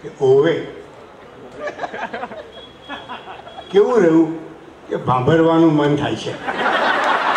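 An elderly man speaks slowly and expressively into a microphone, heard through loudspeakers.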